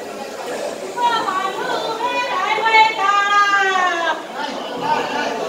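A woman wails loudly with a rising and falling voice.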